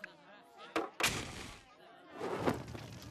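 Flames burst alight with a loud whoosh.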